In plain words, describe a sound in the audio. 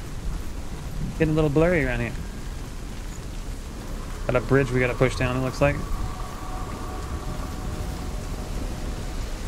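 Footsteps run over soft, wet ground.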